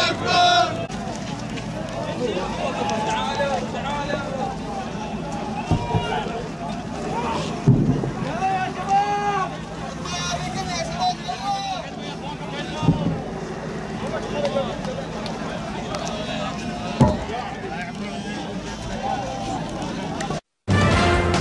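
A crowd of men shouts and chants outdoors.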